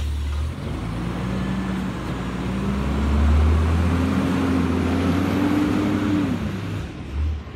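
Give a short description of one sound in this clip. A garbage truck engine revs loudly up close, rising in pitch.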